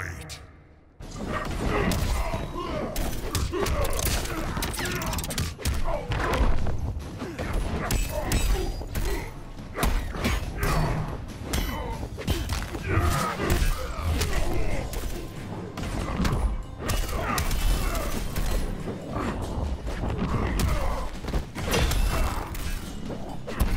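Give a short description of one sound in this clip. Punches and kicks land with heavy thuds in quick succession.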